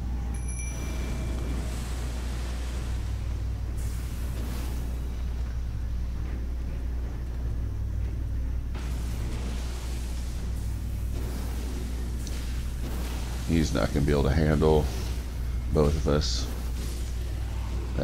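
A sword swishes through the air in repeated slashes.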